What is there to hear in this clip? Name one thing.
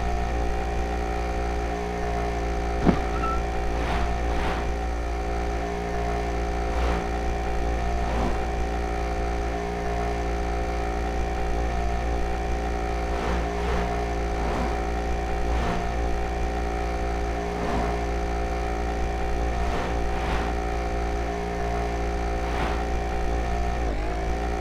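A motorcycle engine drones steadily at high speed.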